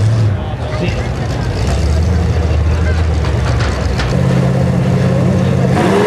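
Engines rumble low while cars idle.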